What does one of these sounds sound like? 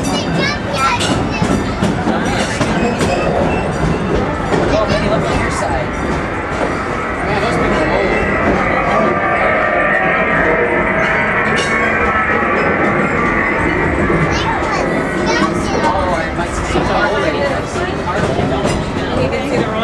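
Several passengers chatter close by.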